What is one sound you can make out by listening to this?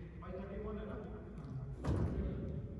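A man talks nearby in a large echoing hall.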